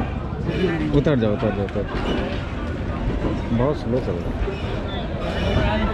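A crowd chatters on a platform nearby.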